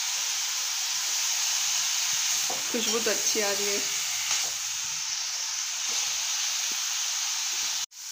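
A metal ladle scrapes and clinks against a pan.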